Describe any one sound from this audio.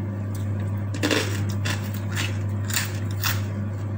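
Crisp raw leaves crunch as they are bitten.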